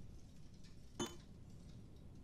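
A keypad button clicks with a short electronic beep.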